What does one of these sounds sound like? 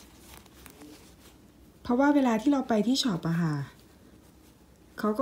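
A soft cloth rubs against a metal ring.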